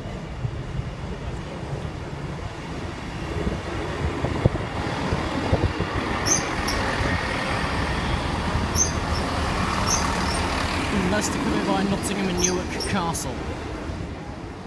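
A train rumbles past close by, its wheels clattering over the rails.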